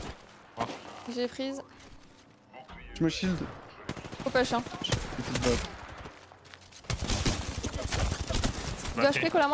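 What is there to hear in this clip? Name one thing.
A young woman talks with animation through a microphone.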